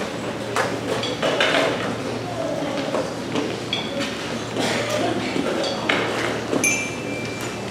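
Band players warm up with scattered, overlapping notes in a large, echoing hall.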